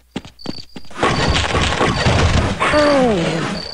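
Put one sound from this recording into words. Wooden crate planks crack and splinter under blows.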